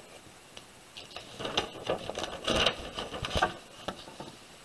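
Paper rustles and crinkles as a page is turned.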